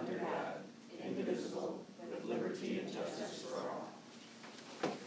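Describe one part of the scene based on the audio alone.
A group of adults speak together in unison.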